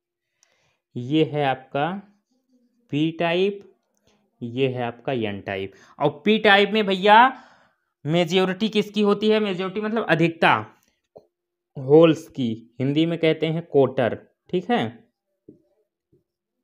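A man speaks in a steady teaching manner.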